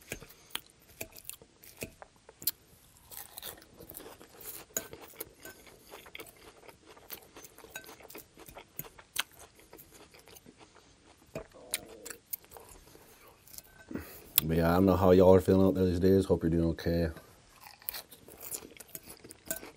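A man chews crunchy salad close to a microphone.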